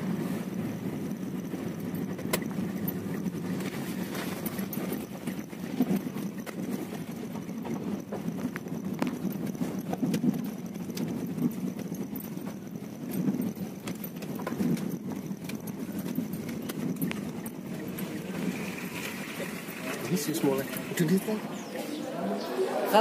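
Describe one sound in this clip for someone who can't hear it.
A car engine hums steadily while driving on a bumpy dirt road.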